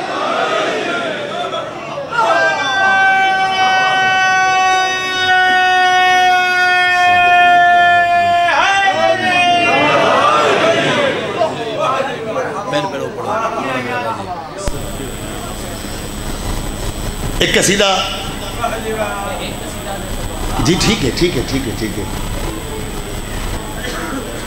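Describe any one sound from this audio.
A man chants loudly through a microphone, holding long wavering notes.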